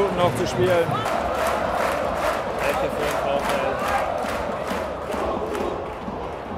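Fans in a stadium crowd clap in a fast rhythm.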